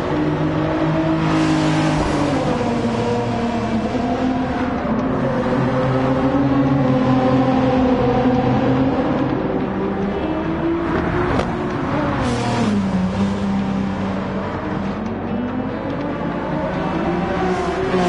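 A sports car engine roars loudly, its pitch rising and falling as it shifts gears.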